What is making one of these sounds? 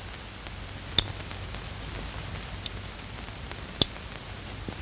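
A lighter clicks sharply a few times.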